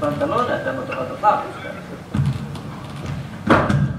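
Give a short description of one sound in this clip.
A wooden staff taps on a stage floor.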